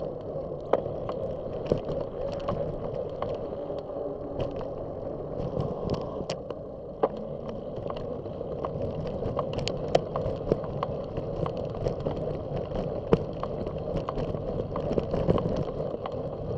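Tyres rumble steadily over a rough road.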